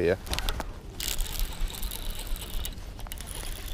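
A fishing reel whirs as line spools out during a cast.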